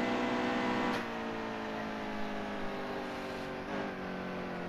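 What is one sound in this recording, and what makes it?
A racing car engine drops in pitch as the car slows.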